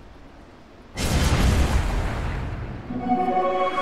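A fiery spell bursts with a loud roaring whoosh.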